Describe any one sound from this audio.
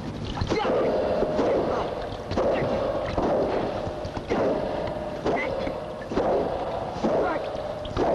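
A man grunts and yells while fighting.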